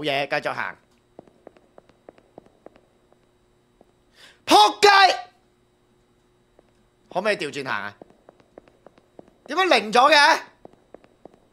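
A young man talks with animation in short bursts, close to a microphone.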